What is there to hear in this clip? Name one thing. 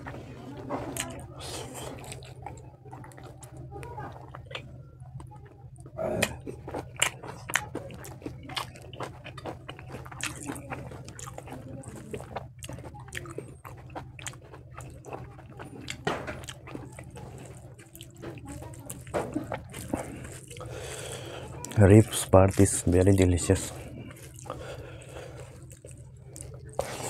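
A man chews and smacks his lips loudly, close up.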